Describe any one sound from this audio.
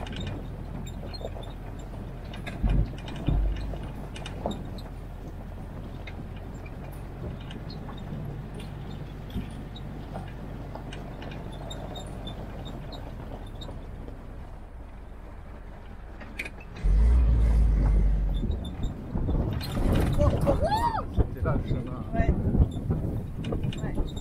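An engine hums low and steady as a small vehicle drives along.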